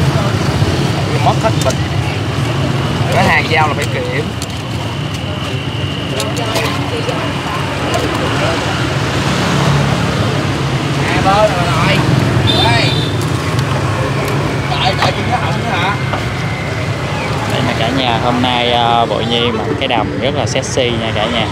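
Men and women chatter nearby outdoors.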